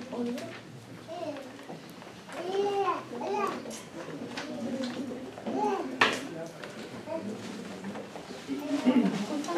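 A man speaks calmly to a small group in a room.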